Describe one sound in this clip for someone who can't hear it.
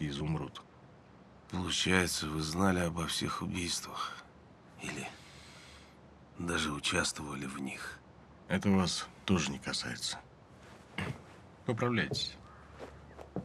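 A middle-aged man speaks calmly and low, close by.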